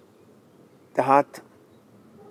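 An elderly man speaks briefly, close by.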